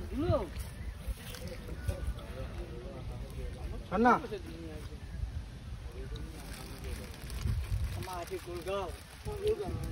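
An elephant rustles and crunches dry leaves underfoot.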